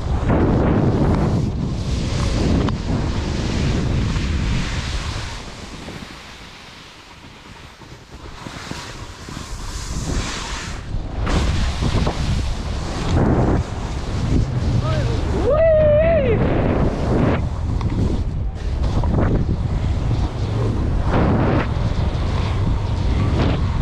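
Wind rushes loudly past a fast-moving skier, outdoors.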